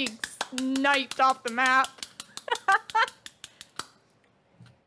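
A man claps his hands quickly.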